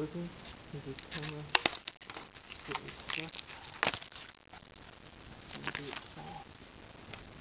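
Plastic wrap crinkles and tears as hands unwrap a box.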